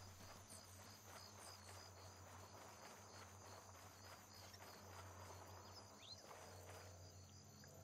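Footsteps crunch on sand and gravel at a run.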